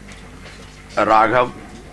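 A second man speaks briefly through a microphone.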